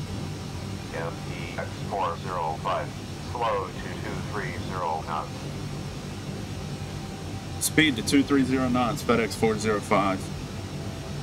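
A man speaks calmly into a headset microphone.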